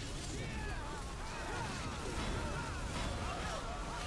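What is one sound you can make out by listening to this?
Weapons clash and magic bursts in a fight.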